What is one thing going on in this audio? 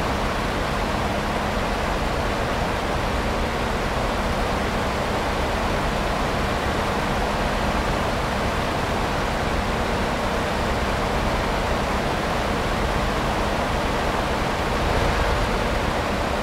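Tyres roll on a highway with a steady rumble.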